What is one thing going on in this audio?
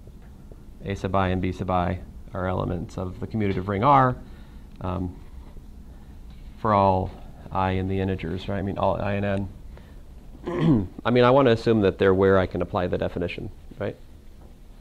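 A man speaks clearly and steadily, as if lecturing to a room.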